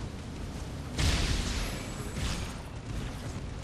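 A loud energy blast bursts and crackles.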